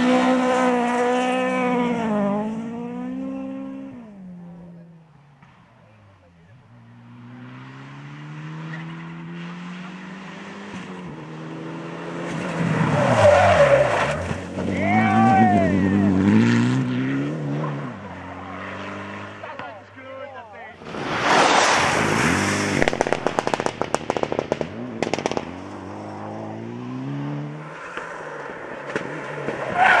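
Rally car engines roar and rev hard as cars race past.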